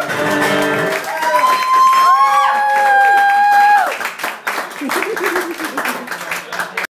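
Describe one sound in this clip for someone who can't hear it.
A man plays an acoustic guitar through an amplifier.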